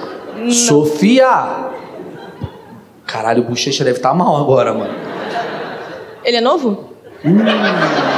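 A young woman speaks and laughs into a microphone.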